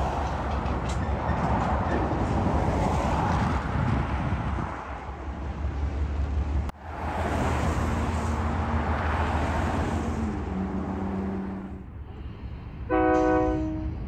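A freight train rumbles along the tracks.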